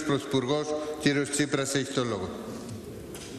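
A man speaks forcefully through a microphone in a large echoing hall.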